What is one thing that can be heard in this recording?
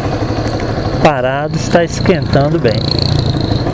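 A motorcycle engine revs up and down as gears change.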